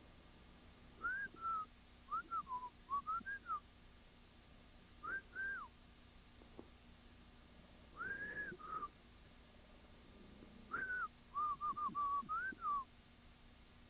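A sled dog whines in short, high, rising and falling yelps.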